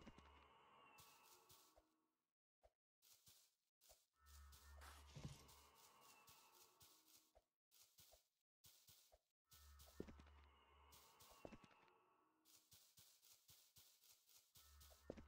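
Footsteps crunch through snow at a quick pace.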